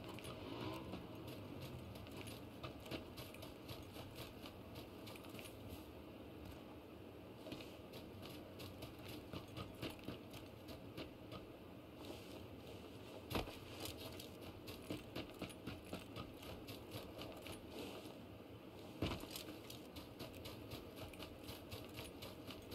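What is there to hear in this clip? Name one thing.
Footsteps crunch quickly through grass and dirt.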